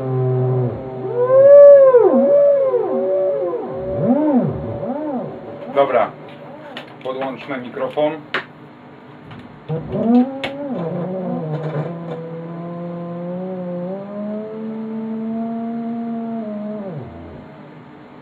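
An electronic tone warbles and glides up and down in pitch.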